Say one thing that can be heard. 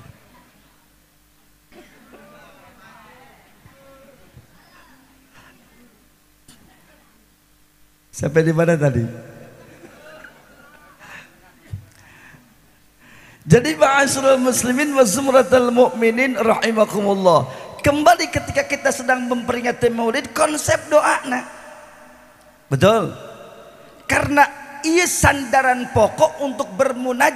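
A man speaks with animation into a microphone, heard through loudspeakers in an echoing hall.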